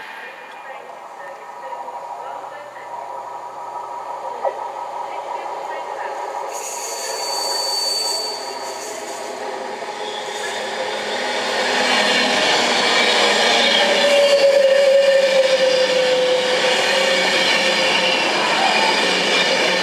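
A train approaches and rushes past close by with a loud, rising roar.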